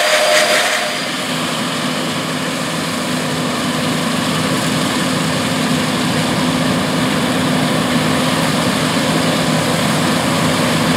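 A combine harvester hums steadily as it cuts grain farther off.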